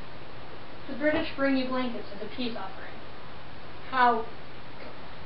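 A teenage girl speaks calmly nearby.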